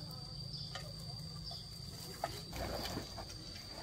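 A metal can drops into grass with a light thud.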